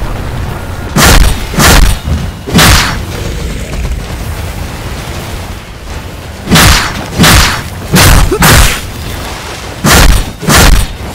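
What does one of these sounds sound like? Heavy sword strikes slash and clang in quick bursts.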